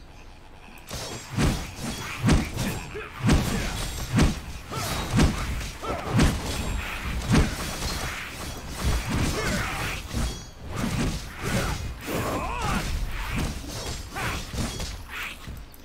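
Magic blasts and blows crash in quick bursts.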